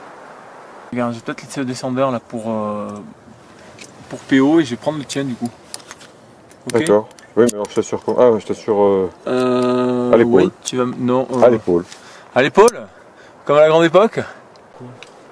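A middle-aged man talks close by, calmly and slightly breathless.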